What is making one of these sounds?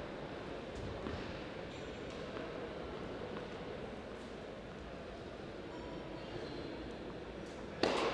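A tennis player's footsteps tap on a hard court.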